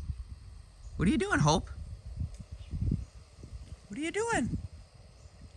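A small animal yelps in high, bending cries, twice.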